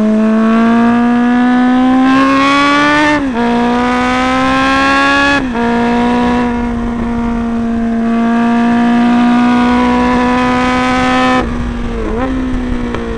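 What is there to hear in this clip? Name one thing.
A motorcycle engine roars up close, rising in pitch and dropping sharply with each gear change.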